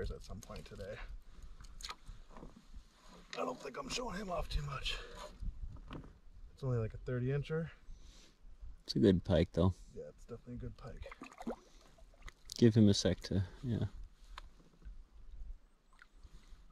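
Water laps against a canoe.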